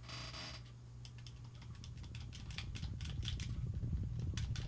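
Small chicks chirp and peep in a busy flock.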